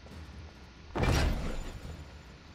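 A magical whoosh sounds as a trap is set down.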